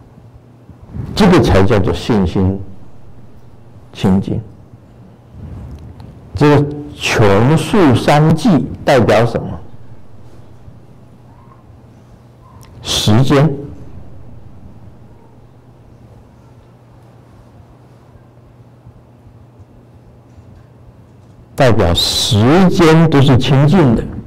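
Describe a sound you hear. An elderly man speaks calmly into a microphone, in bursts with long pauses.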